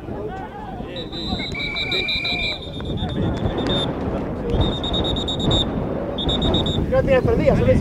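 A referee's whistle blows several sharp blasts.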